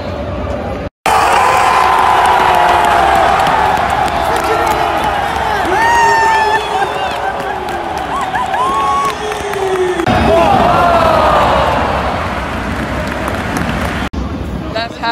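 A stadium crowd chants in unison.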